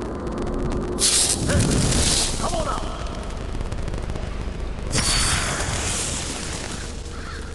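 A magical blast bursts with a loud rushing whoosh.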